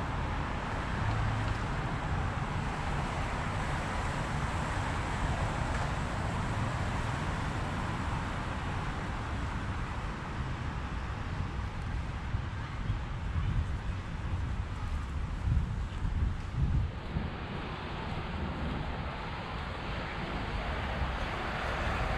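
Traffic hums along a road on the far side of a park.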